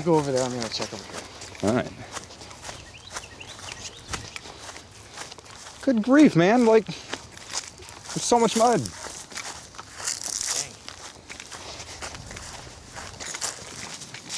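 Footsteps crunch on dry grass and leaves.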